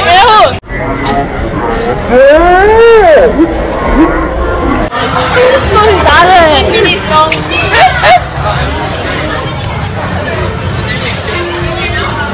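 A crowd of children chatters in the background.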